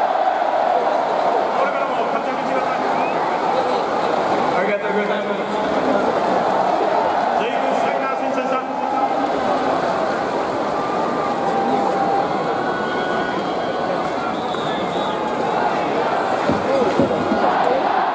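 A large stadium crowd murmurs and cheers steadily in a big open space.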